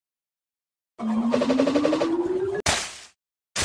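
A rising electronic sweep plays as a blast clears many tiles.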